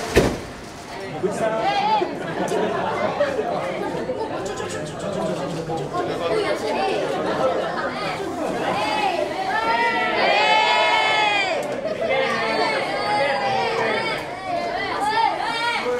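Excited children and young fans shout and call out eagerly close by.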